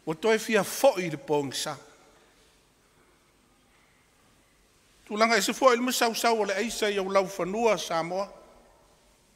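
An elderly man speaks calmly and deliberately into a microphone, pausing between phrases.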